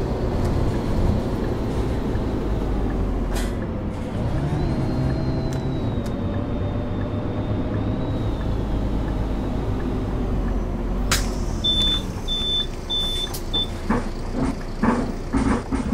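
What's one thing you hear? A bus engine hums steadily and its pitch rises and falls as the bus drives.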